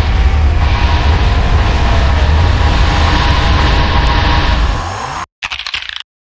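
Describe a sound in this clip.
A loud, buzzing energy blast roars and crackles steadily, then cuts off abruptly.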